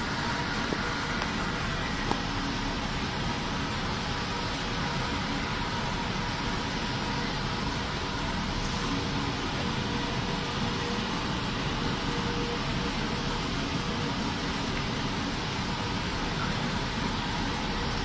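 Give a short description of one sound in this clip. Electric fans whir steadily all around.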